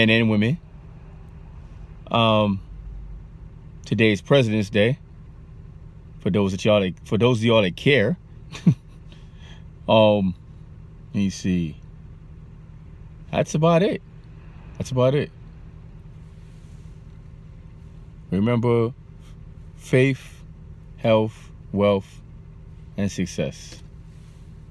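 A man talks calmly and close up, in short bursts with pauses.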